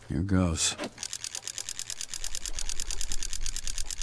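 A metal crank turns with a rapid ratcheting clatter.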